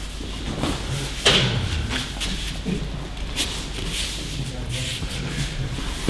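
Bare feet shuffle and thump on a mat in a large echoing hall.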